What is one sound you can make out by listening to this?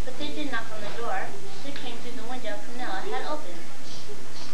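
A young girl speaks clearly to a room, heard from a short distance.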